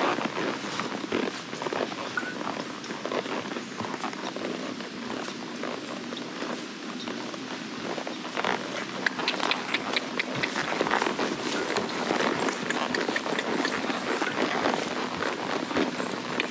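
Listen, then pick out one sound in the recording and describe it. Tall grass swishes and rustles against a horse's legs.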